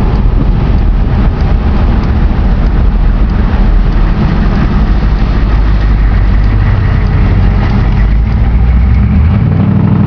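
Tyres roll over the road.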